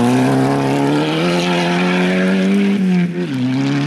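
Gravel sprays from a car's spinning tyres.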